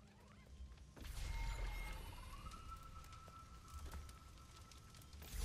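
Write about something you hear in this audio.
A shimmering magical tone swells and rises, then holds.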